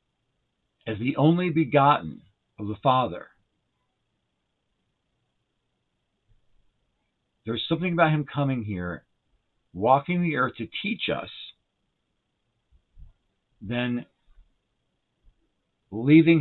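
A middle-aged man speaks calmly into a close microphone, pausing between phrases.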